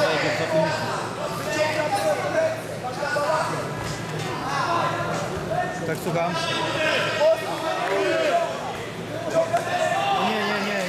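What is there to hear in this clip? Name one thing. A crowd of men and women talk and call out in an echoing hall.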